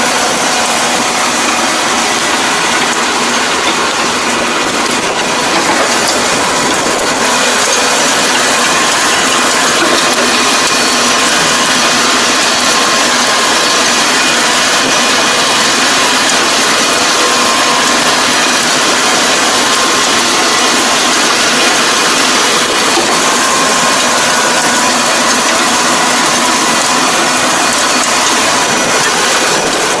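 A tractor engine runs steadily close by.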